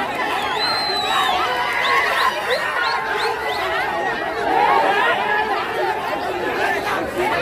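A crowd of men and women shout and clamour excitedly outdoors.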